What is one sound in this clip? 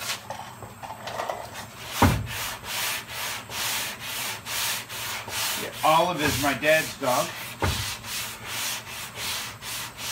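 A sanding block scrapes back and forth over a car panel in quick, even strokes.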